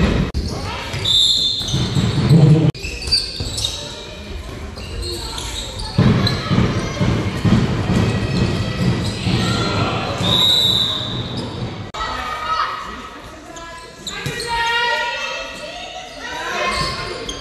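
Sneakers squeak sharply on a hard floor in a large echoing hall.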